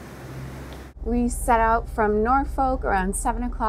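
A woman speaks close up with animation.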